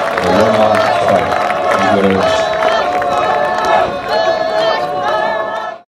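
A group of women chant and sing together.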